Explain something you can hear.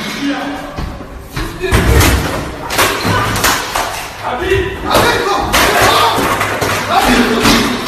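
Several men shout angrily nearby.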